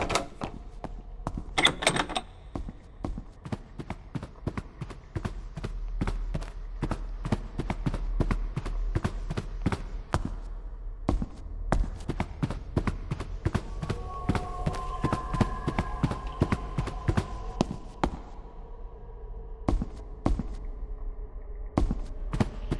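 Footsteps climb hard stairs at a steady pace.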